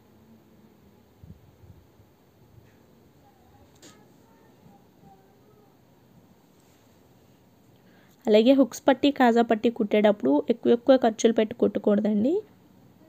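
Fabric rustles softly as hands smooth and fold it.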